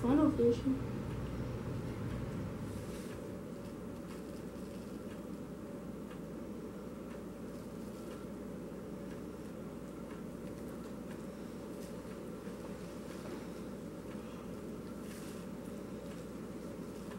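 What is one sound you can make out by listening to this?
Small plastic pieces click and rustle softly in a child's hands.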